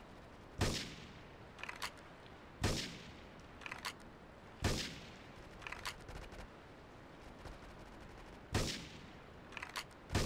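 A rifle fires loud, sharp shots every couple of seconds, each trailing off in a short echo.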